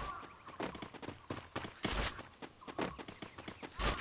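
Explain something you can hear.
Footsteps patter quickly as a game character runs.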